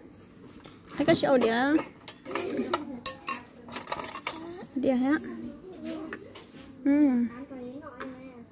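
A young child speaks close by in short phrases.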